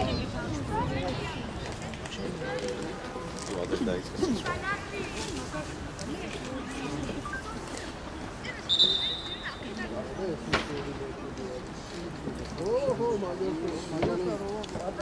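Young players call out to each other across an open outdoor pitch.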